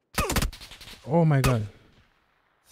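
A man exclaims loudly into a close microphone.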